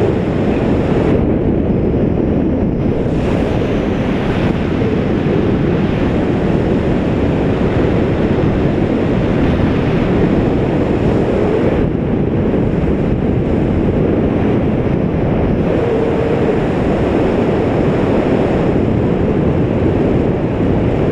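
Strong wind rushes and buffets loudly and steadily, as if in flight high outdoors.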